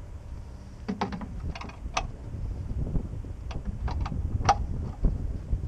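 A metal tow bar clanks and clicks against an aircraft wheel.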